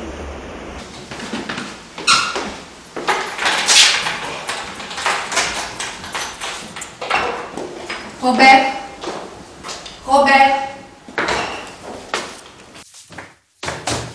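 Footsteps clatter down a wooden staircase indoors.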